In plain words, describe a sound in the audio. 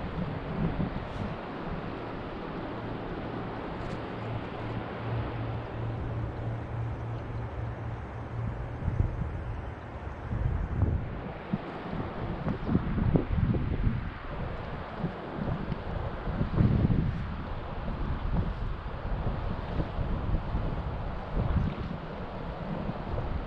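River water laps and ripples.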